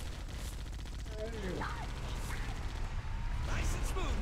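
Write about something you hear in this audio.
A vehicle-mounted machine gun fires rapid bursts.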